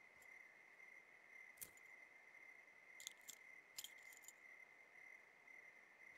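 A bunch of keys jingles.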